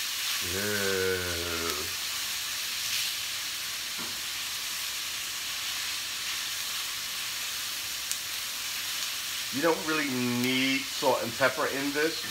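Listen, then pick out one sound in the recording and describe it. A spatula scrapes and stirs in a metal pan.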